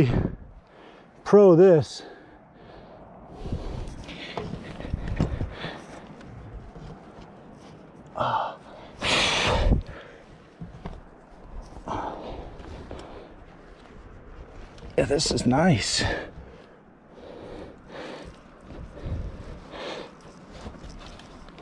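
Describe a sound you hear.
Hands scrape and pat against rough rock.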